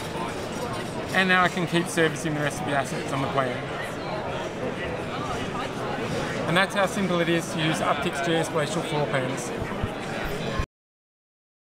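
A young man talks with animation, close to the microphone.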